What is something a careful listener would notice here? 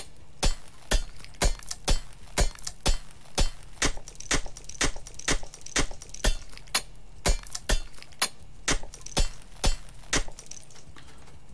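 A pickaxe strikes rock in a quick, steady rhythm.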